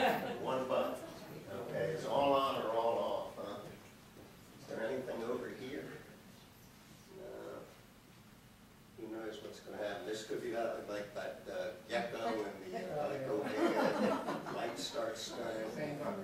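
An older man speaks calmly through a microphone in a room with a slight echo.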